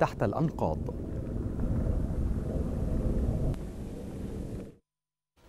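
A distant explosion rumbles low and long.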